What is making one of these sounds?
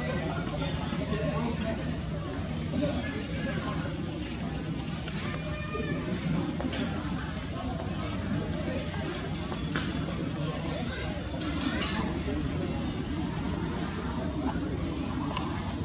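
A baby monkey suckles with soft smacking sounds.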